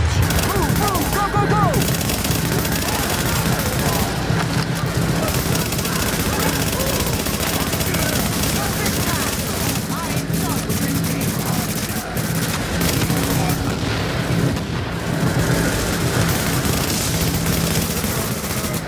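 Rapid gunfire rattles and bangs.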